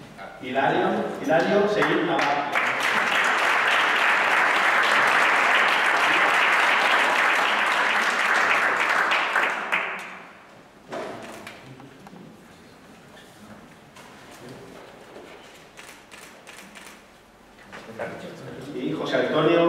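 A man speaks into a microphone over loudspeakers in a large room.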